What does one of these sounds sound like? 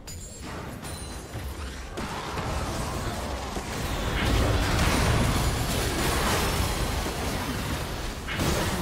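Spell effects whoosh and crackle in a video game battle.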